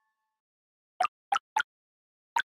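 Small pops sound in quick succession.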